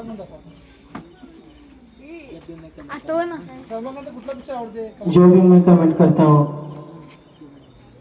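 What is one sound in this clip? A man calls out loudly through a microphone and loudspeaker.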